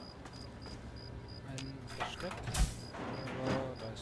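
A heavy metal door clanks open.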